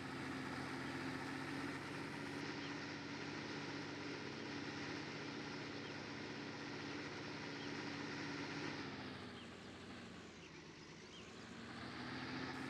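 A tractor engine hums steadily, dropping in pitch as the tractor slows and then rising again.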